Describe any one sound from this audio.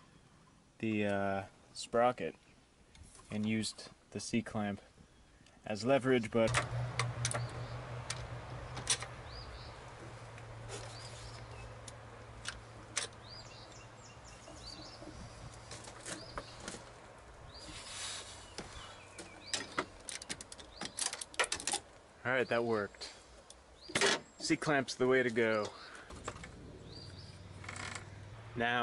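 Metal tools clink and click against engine parts.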